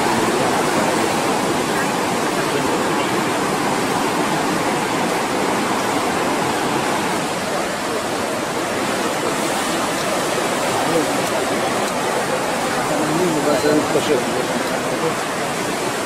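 Waves surge and break against rocks outdoors.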